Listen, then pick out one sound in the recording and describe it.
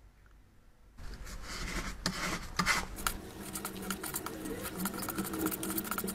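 A plastic scraper scrapes across a thin plastic sheet.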